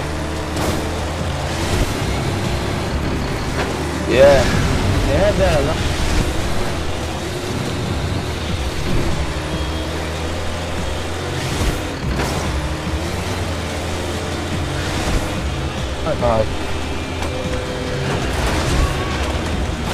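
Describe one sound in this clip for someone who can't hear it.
A vehicle engine roars steadily as it races along.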